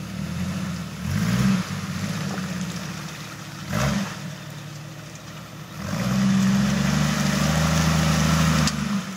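Tyres spin and churn in mud.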